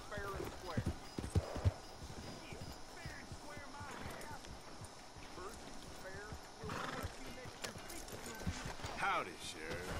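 Horse hooves clop on a dirt street.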